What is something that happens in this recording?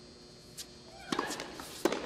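A tennis racket strikes a ball on a serve.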